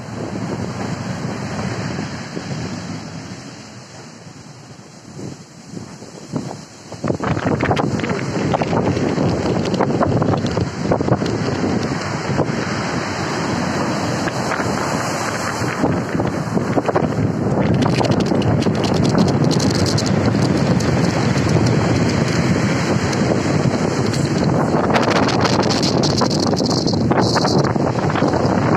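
Rough waves crash and roar onto the shore.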